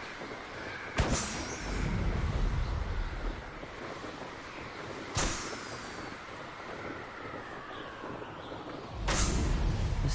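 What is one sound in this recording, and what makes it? Balloons pop with sharp bangs.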